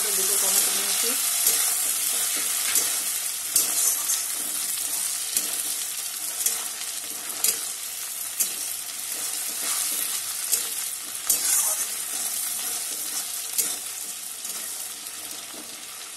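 A spatula scrapes and clatters against a metal wok.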